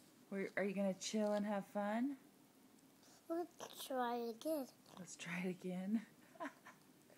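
A young girl talks softly close by.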